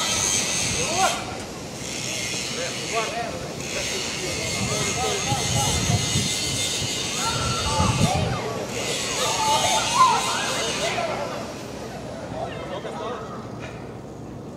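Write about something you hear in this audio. Young men shout and call to each other across an open outdoor pitch.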